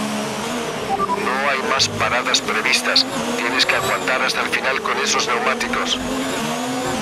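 A racing car engine crackles and pops as it shifts down through the gears.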